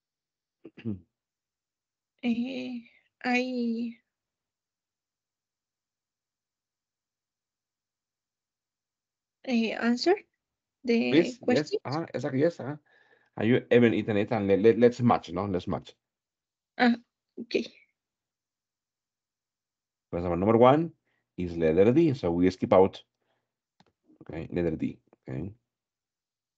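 A man speaks calmly through an online call, in bursts with pauses.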